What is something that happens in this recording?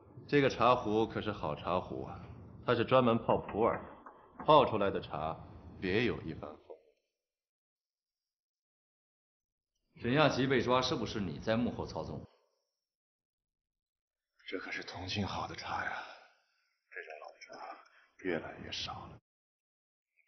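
A young man speaks calmly and pleasantly, close by.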